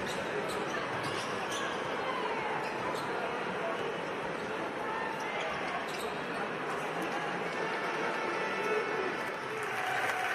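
A large indoor crowd murmurs and cheers steadily.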